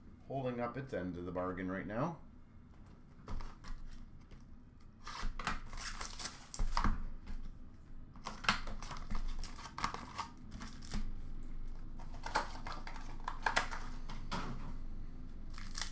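Small boxes tap and slide on a glass counter.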